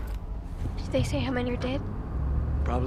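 A woman asks a question calmly.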